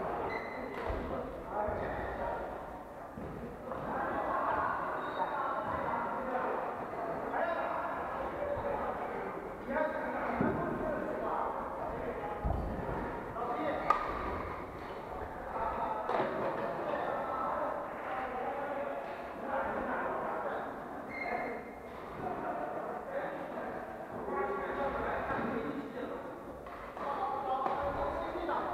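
Men talk casually close by.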